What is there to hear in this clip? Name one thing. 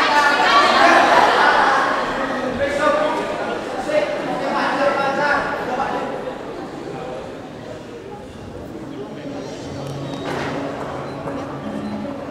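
Music with singing plays through loudspeakers in a large echoing hall.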